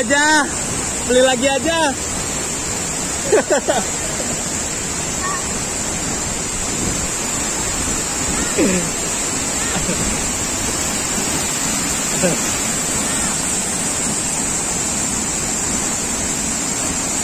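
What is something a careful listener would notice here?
Water rushes steadily over rocks.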